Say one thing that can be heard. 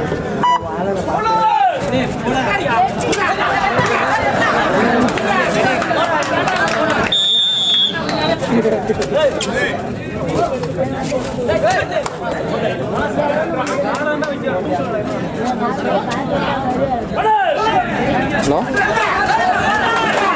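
A large crowd shouts and cheers loudly.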